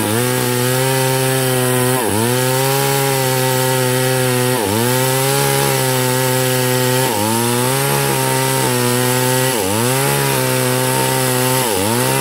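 A chainsaw engine roars loudly and steadily, dipping briefly every few seconds.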